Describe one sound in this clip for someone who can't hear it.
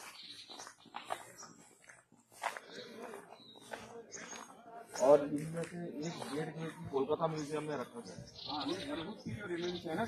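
Footsteps scuff on a stone path.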